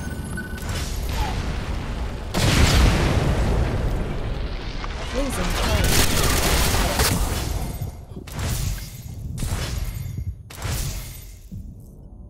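Gunfire bursts loudly and rapidly.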